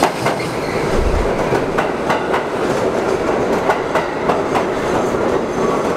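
Subway cars clatter past along the platform.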